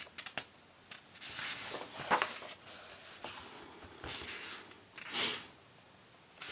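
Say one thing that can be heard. Paper pages rustle and flip as a book's pages are turned by hand.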